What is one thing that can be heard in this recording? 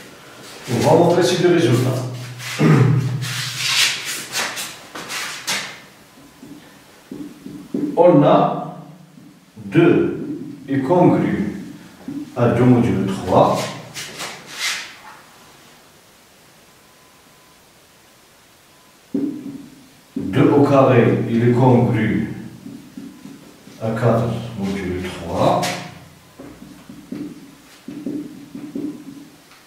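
A middle-aged man speaks calmly and clearly, explaining.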